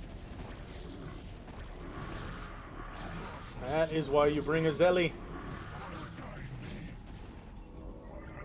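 Laser weapons zap and crackle in a video game battle.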